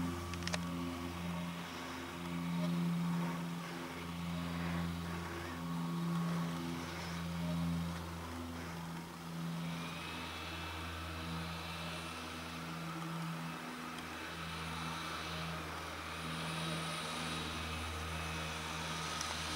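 A snowmobile engine drones and revs nearby.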